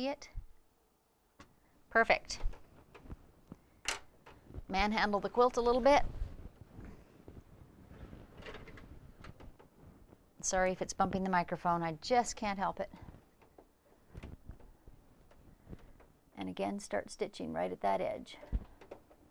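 A sewing machine hums and stitches.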